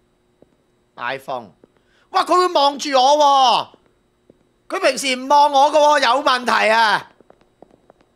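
A man exclaims loudly and excitedly into a microphone, close by.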